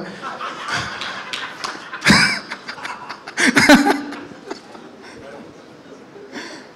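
A young man speaks and laughs into a microphone over a loudspeaker.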